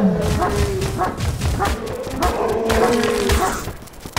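A large wolf growls and snarls.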